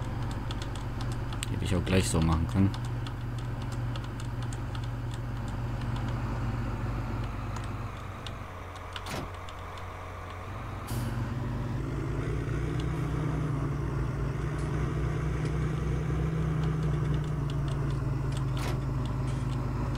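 A tractor engine idles and rumbles steadily.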